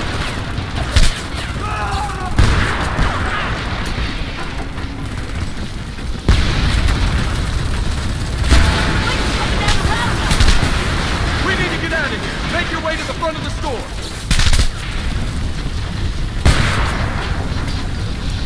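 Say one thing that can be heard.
A fire roars steadily.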